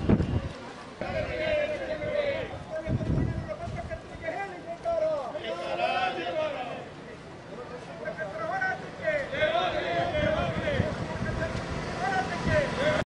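A man shouts loudly outdoors.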